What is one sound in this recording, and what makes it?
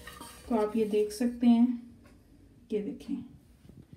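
A wooden spoon scrapes and stirs meat in a metal pan.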